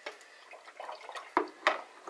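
A spoon stirs in a plastic bowl.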